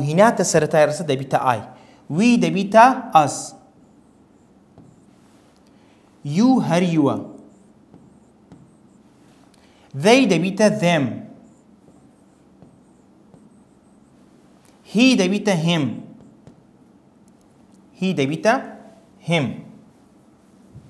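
A man speaks calmly into a close microphone in short bursts with pauses.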